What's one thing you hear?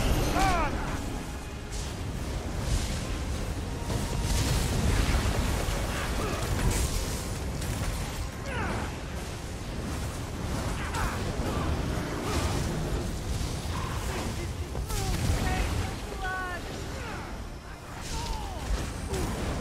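Magic spells crackle and burst in a battle.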